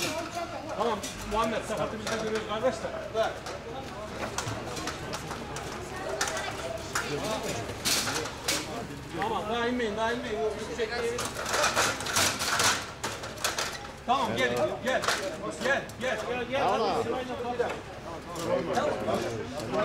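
Several men talk urgently nearby.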